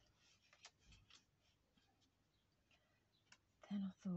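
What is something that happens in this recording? Paper rustles softly.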